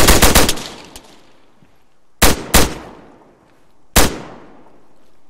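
A rifle fires several loud shots that echo away.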